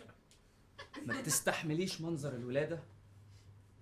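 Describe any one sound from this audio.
A young man speaks loudly and with animation, close by.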